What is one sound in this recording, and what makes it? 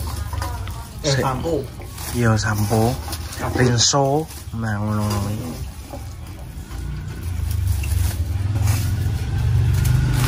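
Small shallots rustle and clatter into a plastic bag.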